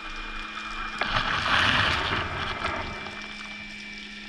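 Underwater, a diver breathes out and a burst of bubbles gurgles loudly.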